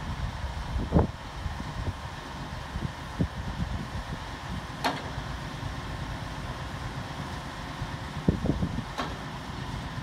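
Metal knocks and clanks now and then.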